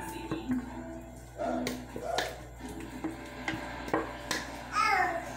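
A metal saucepan clinks as food is tipped out of it.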